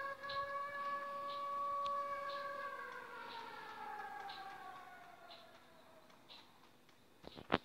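An alert tone holds steady, then slowly slides down in pitch.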